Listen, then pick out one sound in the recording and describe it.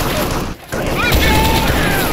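An assault rifle fires a short burst.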